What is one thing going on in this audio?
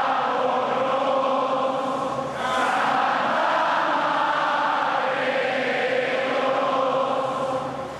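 A large crowd sings together loudly in a reverberant hall.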